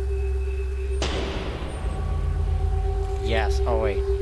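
A cabinet door swings open with a sharp knock.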